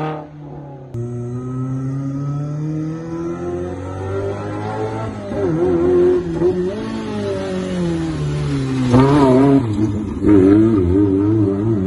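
A second rally car engine roars and revs as it approaches and passes close by.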